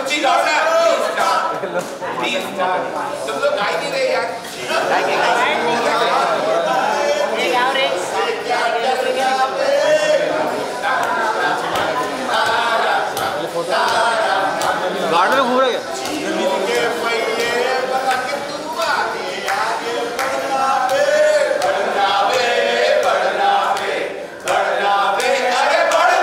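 A crowd talks and shouts loudly all around.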